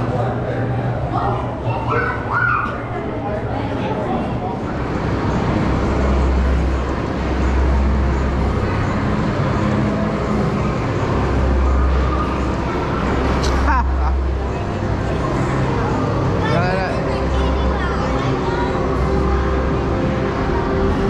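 Many people chatter in the background.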